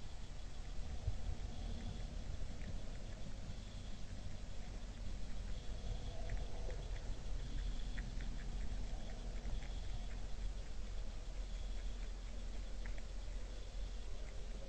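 A deer crunches grain softly as it eats, close by.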